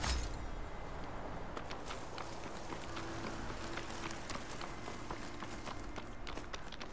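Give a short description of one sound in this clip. Footsteps rustle quickly through dry grass and brush.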